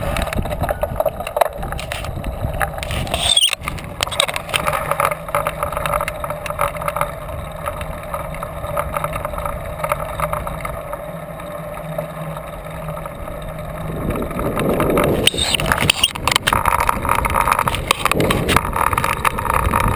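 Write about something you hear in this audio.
Bicycle tyres hum on the road surface.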